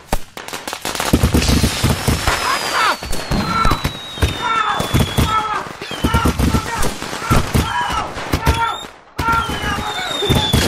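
Fireworks bang and crackle loudly in rapid bursts.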